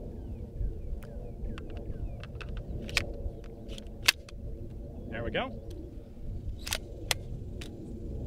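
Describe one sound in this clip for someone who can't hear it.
Metal parts of a gun click and clack as they are handled.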